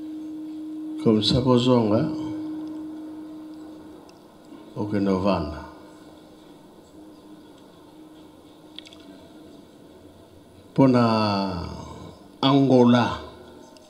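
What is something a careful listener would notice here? An elderly man speaks loudly in short bursts through a microphone and loudspeakers, with the sound echoing.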